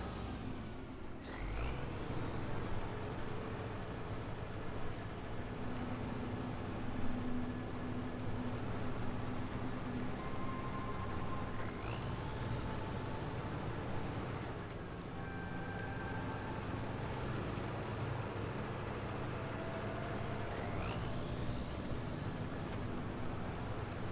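A heavy truck engine rumbles steadily as it crawls over rough ground.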